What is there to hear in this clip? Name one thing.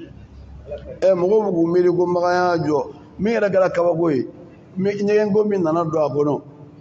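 A middle-aged man chants in a loud, melodic voice through a microphone, in a large echoing hall.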